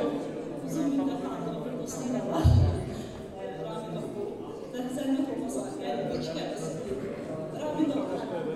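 A woman speaks calmly into a microphone in a room with a slight echo.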